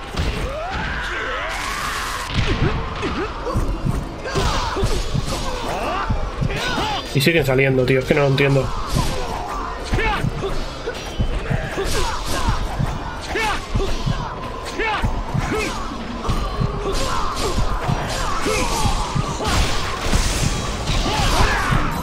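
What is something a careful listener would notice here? Blades swing and clash in quick, sharp hits.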